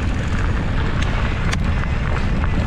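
A bicycle rattles and clicks over bumps.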